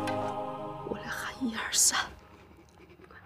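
A young woman speaks quietly and tensely.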